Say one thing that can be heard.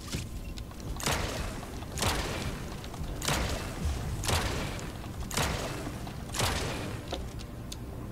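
Energy weapons fire in repeated whooshing bursts.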